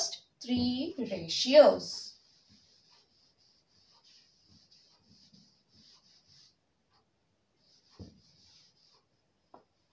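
A cloth duster rubs and swishes softly across a chalkboard.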